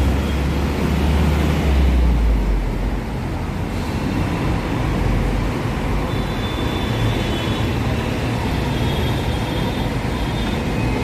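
Traffic rumbles steadily along a busy road.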